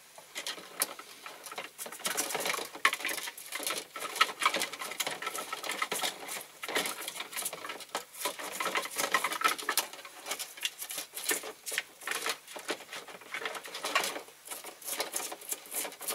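Wet material squelches and splashes as gloved hands work it in a tub.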